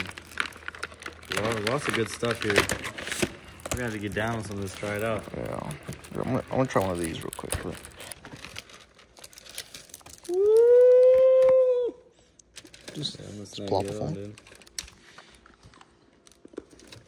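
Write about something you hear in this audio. Packaging crinkles and rustles as snacks are handled.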